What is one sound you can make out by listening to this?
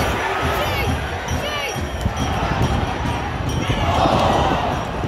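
A large stadium crowd chants and cheers outdoors.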